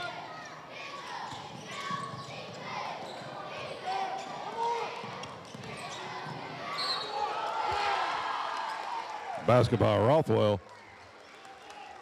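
A crowd in an echoing gym murmurs and cheers.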